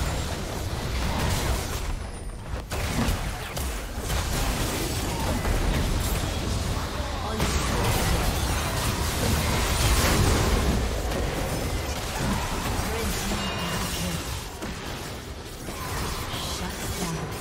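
Game spell effects whoosh, crackle and explode in quick succession.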